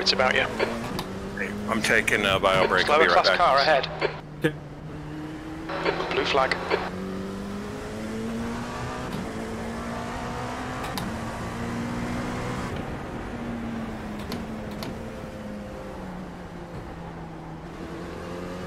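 A racing car engine drones steadily, rising and falling in pitch through the gears.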